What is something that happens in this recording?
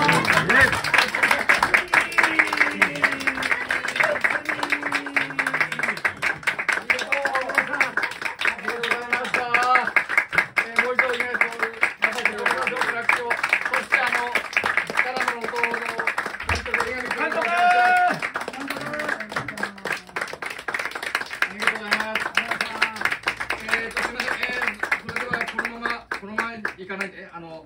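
An acoustic guitar strums a lively rhythm.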